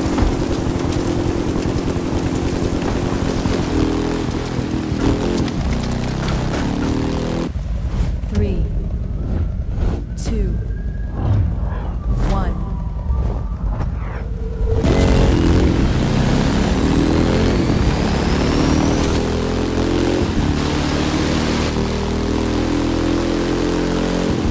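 A motorcycle engine roars and revs as it speeds up.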